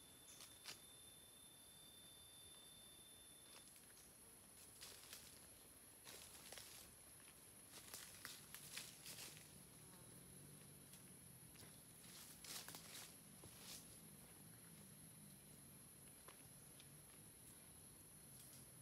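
Footsteps crunch through dry leaves on a forest path.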